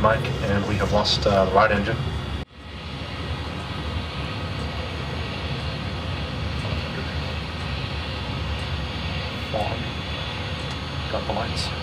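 A steady aircraft engine drone hums throughout.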